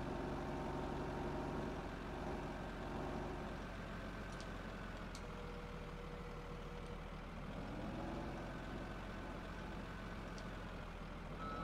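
A wheel loader's diesel engine rumbles steadily and revs up and down.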